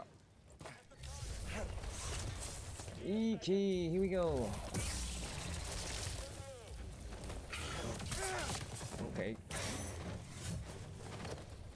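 A lightsaber hums and swooshes during a fight.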